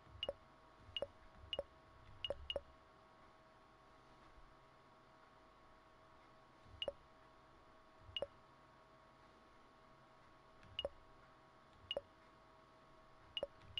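Short, bright menu clicks sound now and then.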